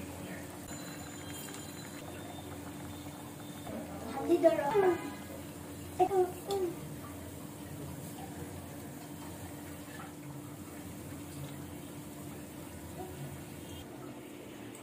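Oil sizzles and bubbles in a frying pan.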